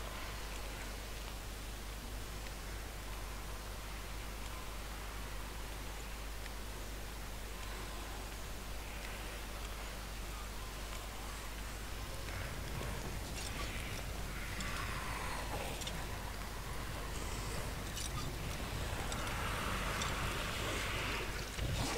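Footsteps crunch softly on the ground.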